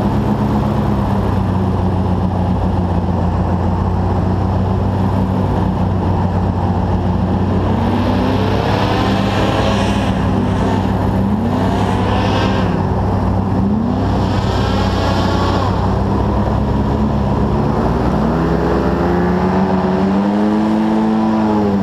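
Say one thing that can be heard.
Another airboat roars past nearby, its engine rising and falling in pitch.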